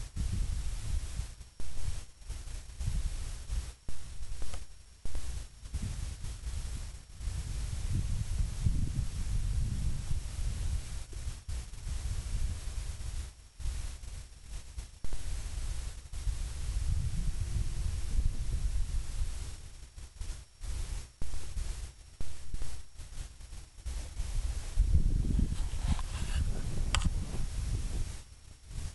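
Goats knock their heads together as they butt.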